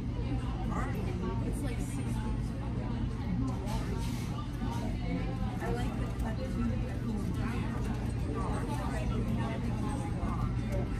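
Men and women chatter in a low murmur in the background.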